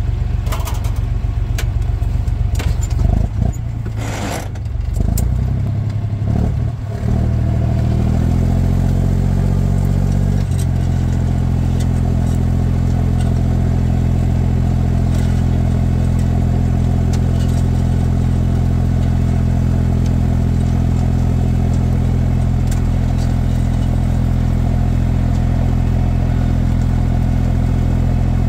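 A tractor engine idles, then revs up and rumbles steadily.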